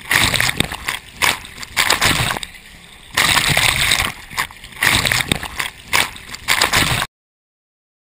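Water splashes and rushes loudly close by in surges.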